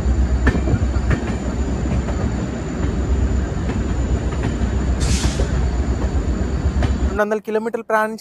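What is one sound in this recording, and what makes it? A train rumbles steadily along the tracks.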